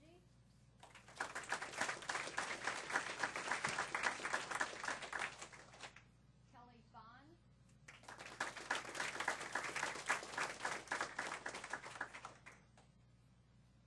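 A group of people applauds loudly in a room.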